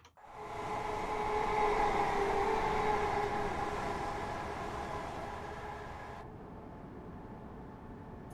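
A train engine hums and rumbles steadily.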